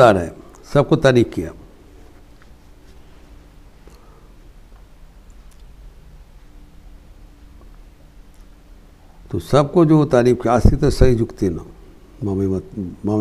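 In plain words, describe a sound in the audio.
An elderly man speaks calmly and close into a clip-on microphone.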